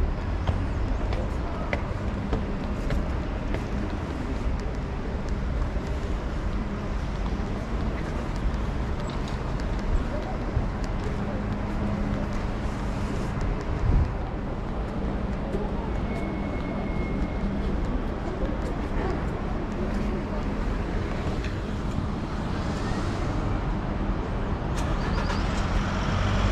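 City traffic rumbles steadily in the distance.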